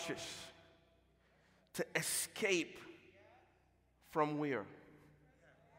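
A man preaches with animation into a microphone, his voice echoing in a large hall.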